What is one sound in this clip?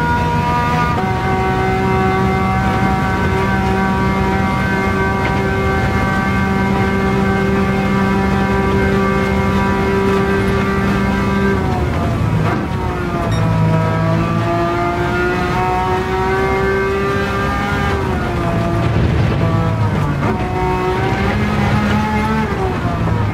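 A racing car engine roars loudly at high revs, dropping and rising in pitch through the corners.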